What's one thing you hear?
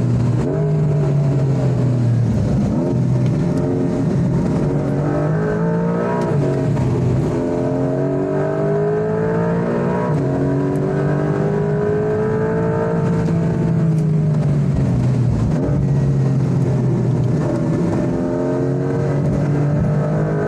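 A car engine roars loudly, revving up and down through the gears.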